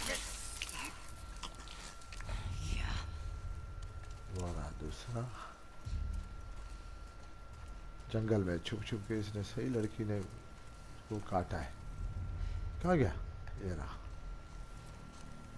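Leaves rustle as someone crawls through dense ferns.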